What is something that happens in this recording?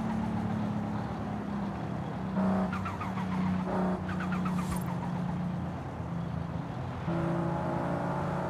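A car engine drones steadily, its pitch falling as the car slows.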